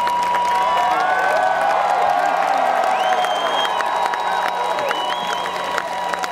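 A large crowd claps along.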